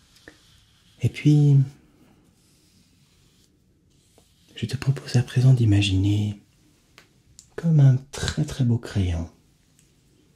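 A young man speaks softly close to a microphone.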